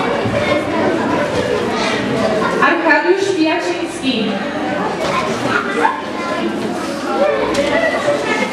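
A woman speaks into a microphone over a loudspeaker in an echoing hall.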